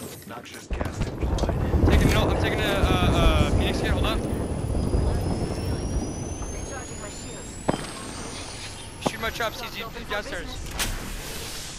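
An electric device crackles and hums as it charges up.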